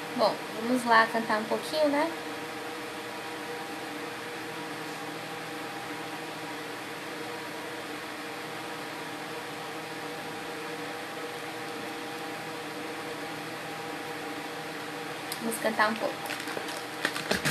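A young woman speaks calmly into a headset microphone.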